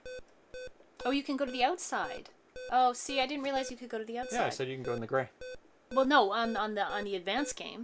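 A woman talks into a microphone.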